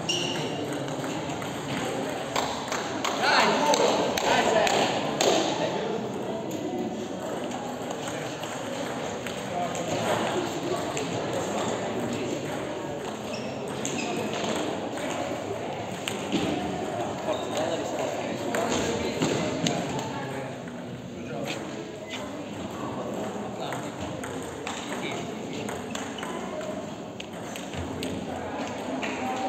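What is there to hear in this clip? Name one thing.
A ping-pong ball clicks back and forth between paddles and table.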